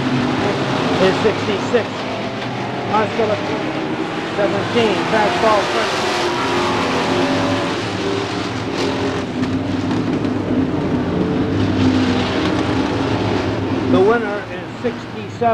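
A crowd of spectators chatters and cheers nearby.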